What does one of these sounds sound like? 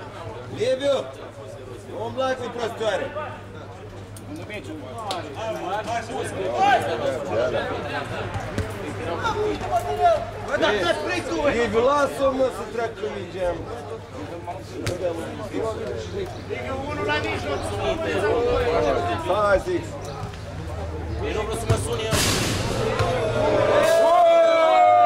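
Men shout and call out to each other during a ball game outdoors.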